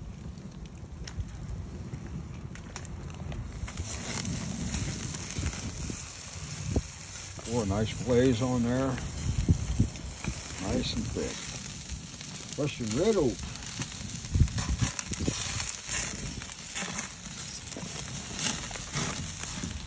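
Sausages sizzle on a hot grill.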